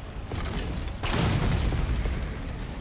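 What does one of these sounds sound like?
A loud explosion booms with a deep rumble.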